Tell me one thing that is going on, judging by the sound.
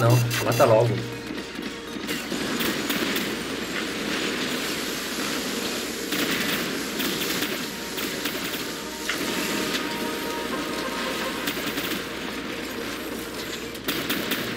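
Heavy metal footsteps stomp and clank.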